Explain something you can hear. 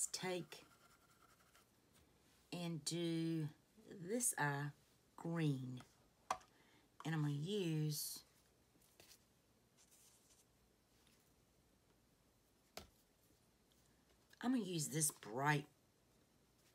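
A middle-aged woman speaks calmly and close by, in short bursts with pauses.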